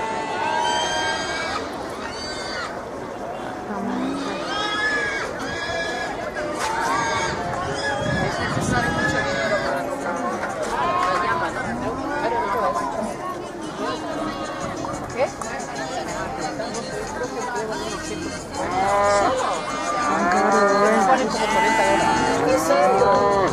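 Many sheep bleat loudly, near and far.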